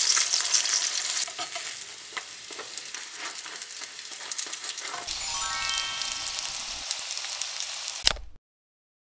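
Dumplings sizzle in hot oil in a frying pan.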